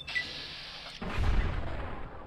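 A bullet strikes a creature with a fleshy thud.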